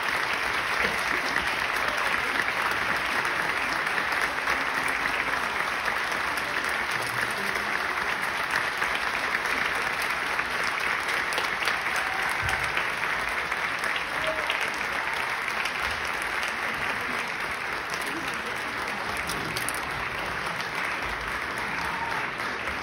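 A large audience applauds steadily in a big hall.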